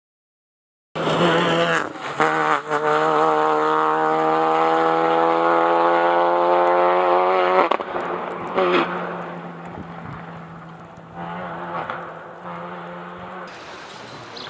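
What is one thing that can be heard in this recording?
A rally car engine roars loudly as it accelerates away, slowly fading into the distance.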